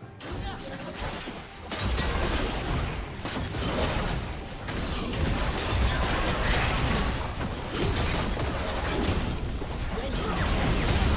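Magic blasts, clashing weapons and explosions crash rapidly during a battle in a video game.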